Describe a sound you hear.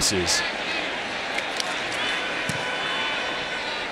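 A football is kicked with a dull thud.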